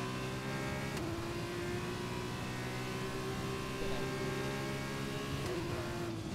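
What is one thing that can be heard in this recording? A racing car engine shifts gears with sharp dips in pitch.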